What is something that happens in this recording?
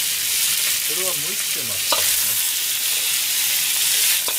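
A spatula scrapes and tosses food in a wok.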